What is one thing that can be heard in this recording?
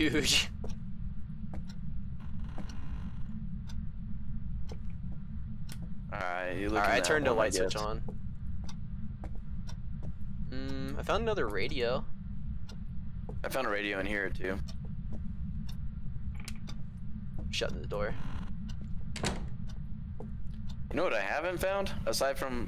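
Footsteps thud slowly on wooden floorboards.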